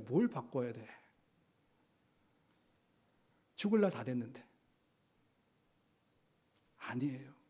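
A middle-aged man speaks calmly into a microphone, with short pauses between phrases.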